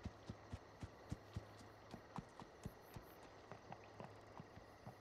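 Horse hooves clop steadily on the ground at a walk.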